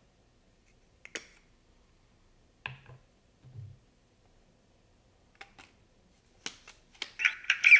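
Metal parts click and clink as a hilt is assembled by hand.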